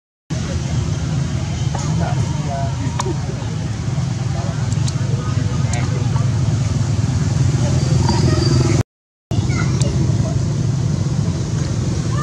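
A monkey chews and smacks on soft fruit.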